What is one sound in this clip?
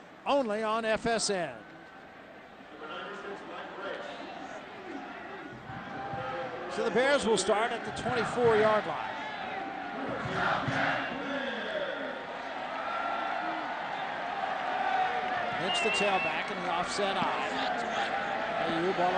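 A large stadium crowd murmurs and cheers in the open air.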